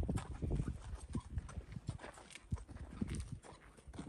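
A horse's hooves clop on the ground.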